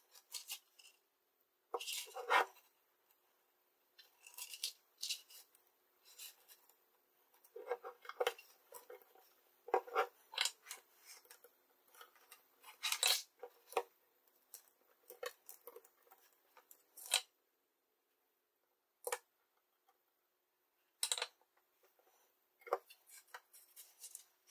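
Wires and small metal parts click and rustle as hands handle them close by.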